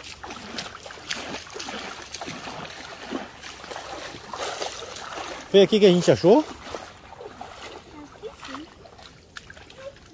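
Feet squelch and splash through wet mud.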